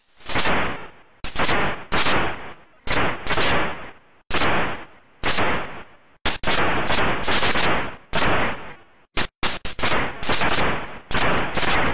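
Video game explosions burst again and again in quick succession.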